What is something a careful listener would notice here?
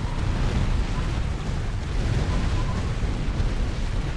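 Jet aircraft roar overhead.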